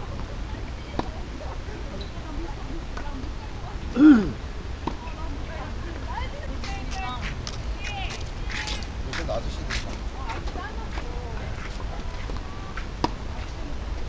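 A tennis ball is struck sharply with a racket.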